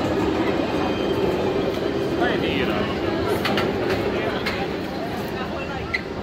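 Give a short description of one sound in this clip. A roller coaster train rumbles along a track overhead and fades away.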